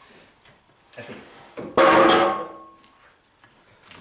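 A hydraulic jack creaks as its handle is pumped.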